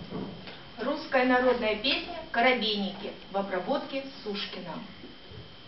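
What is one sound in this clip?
A woman speaks briefly and calmly nearby.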